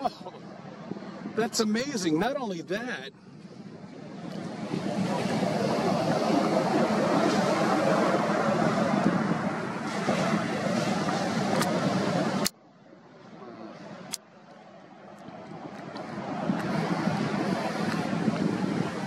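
Waves roll in and crash on the sea, with a steady roaring rush.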